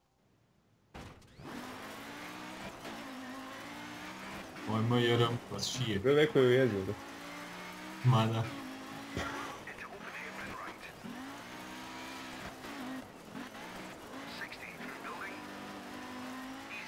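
Gravel crunches and sprays under tyres.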